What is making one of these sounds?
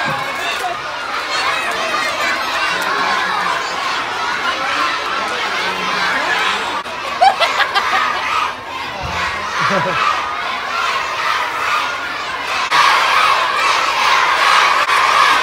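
A large crowd of children chatters and cheers in an echoing hall.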